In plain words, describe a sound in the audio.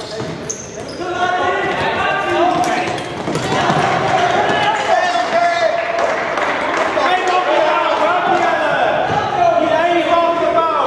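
Young men shout to each other across an echoing hall.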